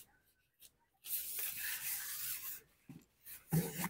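A fabric cover rustles as it is handled.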